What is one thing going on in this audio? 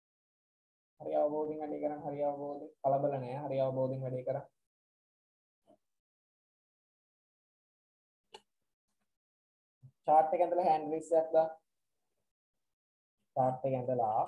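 A young man speaks calmly into a microphone in short bursts, heard as if through an online call.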